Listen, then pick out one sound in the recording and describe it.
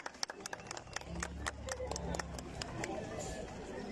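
A brass band plays outdoors.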